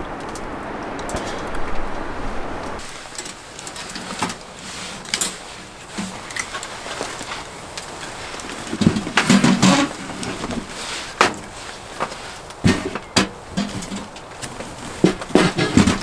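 A small fire crackles in a stove.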